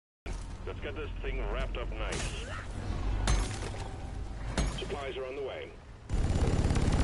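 A man talks through a microphone.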